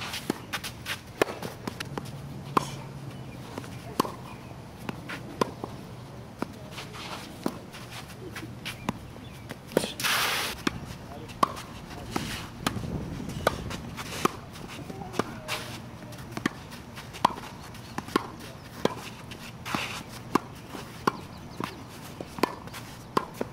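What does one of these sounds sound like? A tennis racket hits a ball with sharp pops, again and again.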